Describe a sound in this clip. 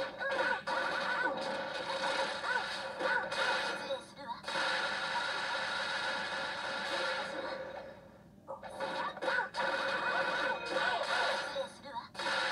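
Fighting game hits crack and thump rapidly.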